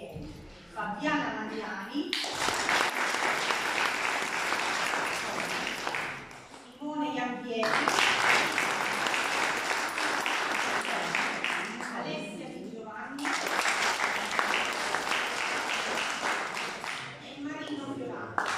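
A woman speaks calmly, heard in an echoing hall.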